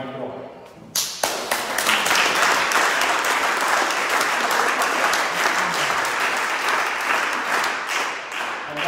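People clap and cheer loudly.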